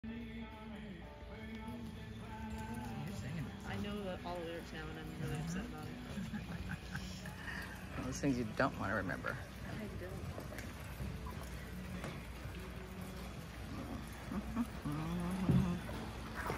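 Horses trot with soft hoofbeats on loose dirt.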